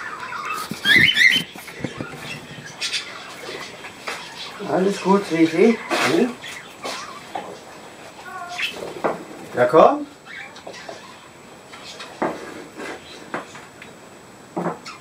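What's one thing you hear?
Small birds chirp and twitter nearby.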